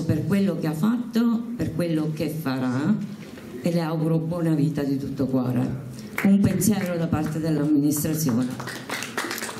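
A woman speaks with animation into a microphone, heard through loudspeakers in an echoing hall.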